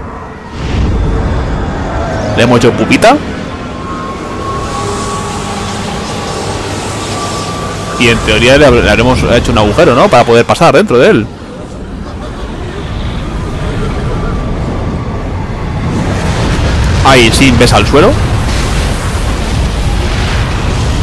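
A powerful blast roars with a deep rumble.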